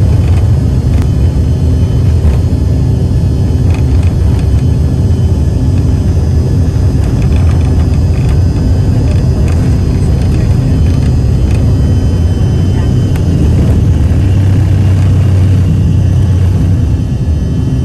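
An airliner's wheels rumble and thump over a concrete runway, then fall quiet at liftoff.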